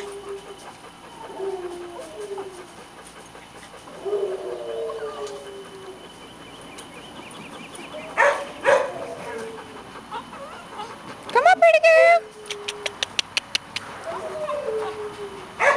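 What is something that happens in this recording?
A dog sniffs busily at the ground.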